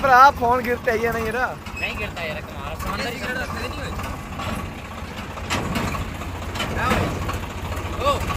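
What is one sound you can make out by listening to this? Tyres crunch slowly over rocks and dirt.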